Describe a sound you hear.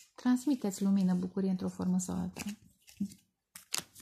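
Playing cards are laid down with a soft slap.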